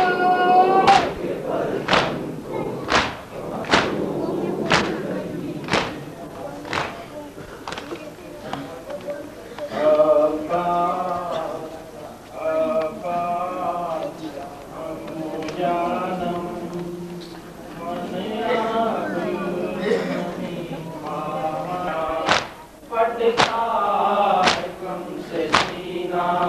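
A crowd of men chants loudly in unison, in a reverberant space.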